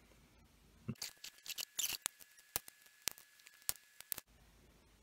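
Metal strips click and tap against battery cells.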